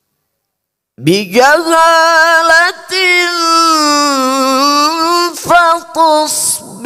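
A man chants in a long, melodic voice through a microphone.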